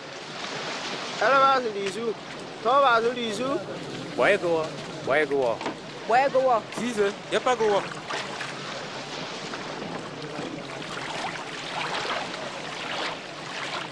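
Small waves splash against a rocky shore.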